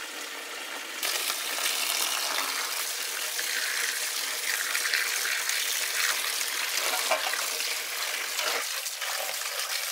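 Running water splashes over fish as hands rinse them in a basket.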